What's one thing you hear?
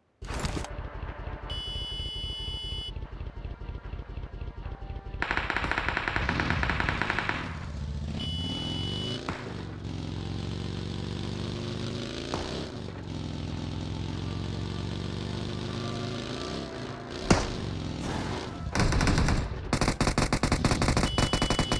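A dune buggy engine revs.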